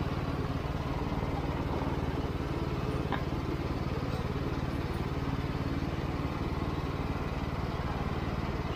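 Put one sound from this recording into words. A juice press machine rumbles and whirs steadily.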